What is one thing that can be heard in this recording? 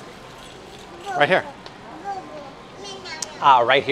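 A toddler girl squeals and babbles loudly close by.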